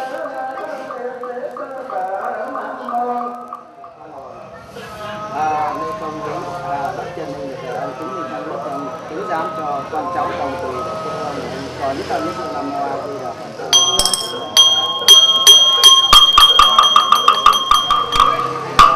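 A man chants steadily into a microphone.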